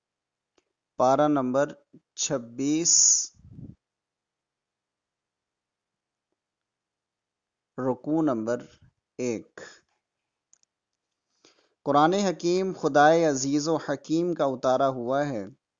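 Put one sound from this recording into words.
A man recites in a melodic voice through a microphone.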